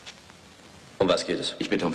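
A man speaks in a low, steady voice close by.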